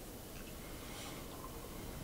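A young man sips a drink close to a microphone.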